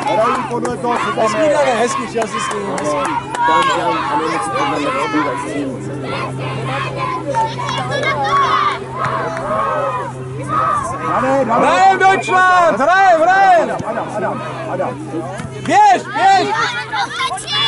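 Young girls shout and call out to each other outdoors.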